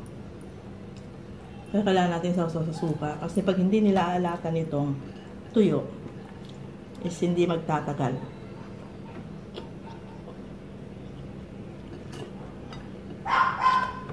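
A spoon and fork clink against a plate.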